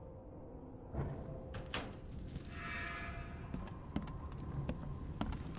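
Footsteps thud slowly on creaking wooden boards.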